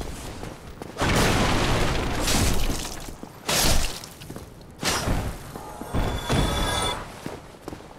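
Wooden barricades crash and splinter as they are smashed apart.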